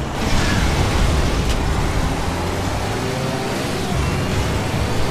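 A heavy vehicle engine roars steadily as it speeds along.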